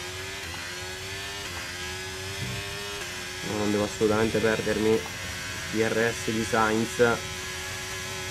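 A racing car engine whines at high revs, stepping up as it shifts gears.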